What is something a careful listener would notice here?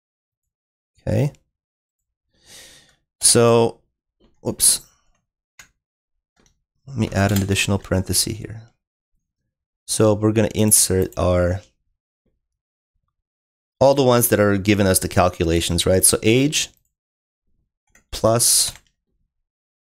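A young man speaks calmly and closely into a microphone, in short bursts with pauses.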